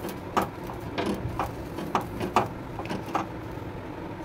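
A vegetable knocks and clatters against a metal grill.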